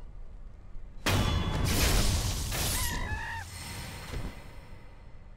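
Blades clash and strike with loud metallic impacts.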